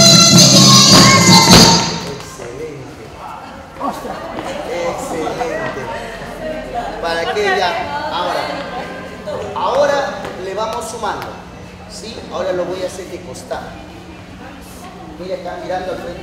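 Feet shuffle on a hard floor.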